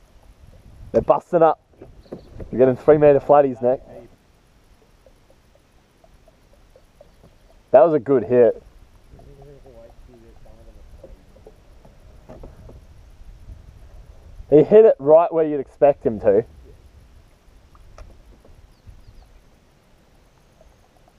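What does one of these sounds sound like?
Water laps gently against a kayak's hull.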